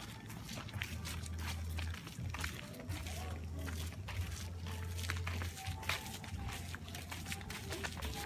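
Several people walk with footsteps on a paved path outdoors.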